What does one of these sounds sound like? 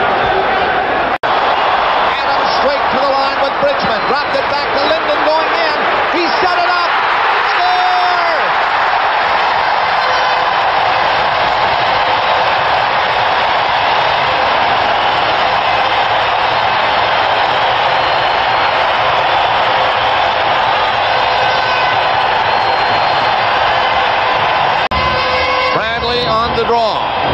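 A large crowd roars and cheers loudly in an echoing arena.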